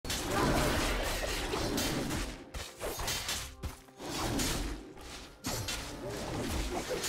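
Game weapons strike and spell effects burst in a fight.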